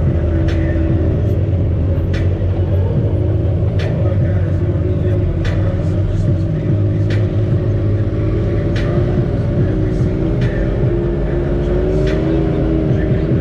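An off-road vehicle's engine rumbles steadily up close.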